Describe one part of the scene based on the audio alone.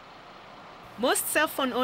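A woman talks on a phone nearby.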